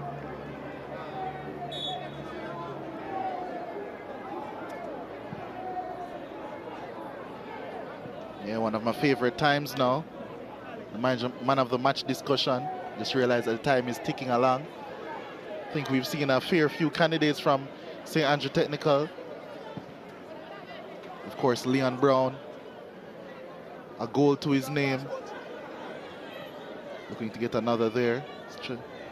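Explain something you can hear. A large crowd murmurs and cheers steadily outdoors.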